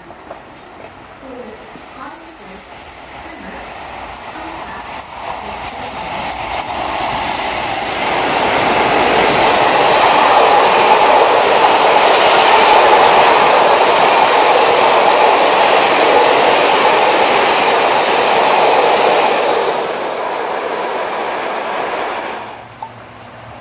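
A train approaches and rumbles loudly past on the rails, then fades away.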